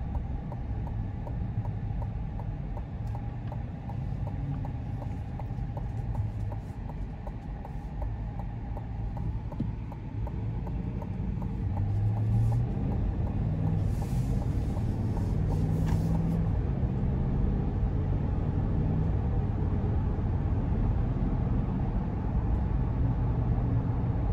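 A car engine hums steadily inside the cabin, growing louder as the car speeds up.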